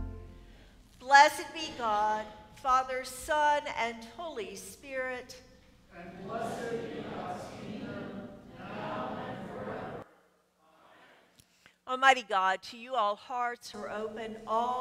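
A middle-aged woman speaks clearly into a microphone.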